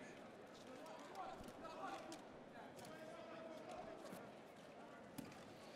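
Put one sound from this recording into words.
Sneakers squeak on the court floor.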